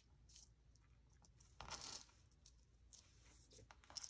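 Hands rub and press paper flat.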